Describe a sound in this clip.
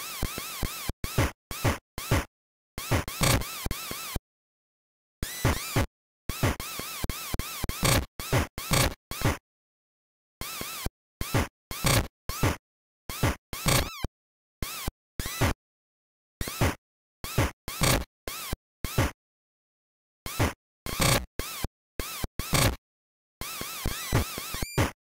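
Chiptune game music plays in short bursts.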